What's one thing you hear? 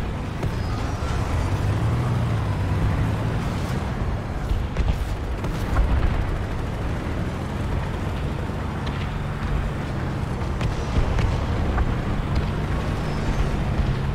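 A heavy tank engine rumbles steadily as the tank drives along.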